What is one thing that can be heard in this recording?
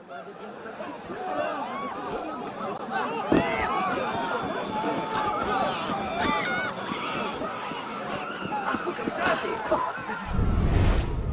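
A crowd of men and women murmurs and shouts nearby.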